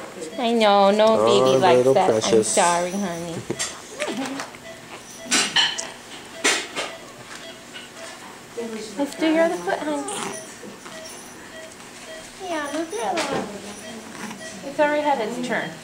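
A newborn baby cries loudly in short bursts close by.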